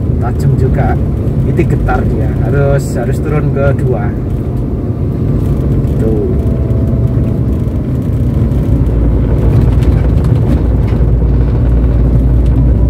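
A car engine hums steadily while driving, with road rumble inside the cabin.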